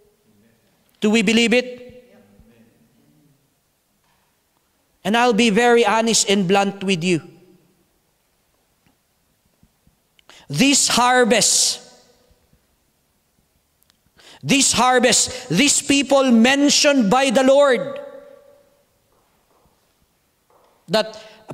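A man preaches into a microphone with animation, in bursts with pauses, in a reverberant hall.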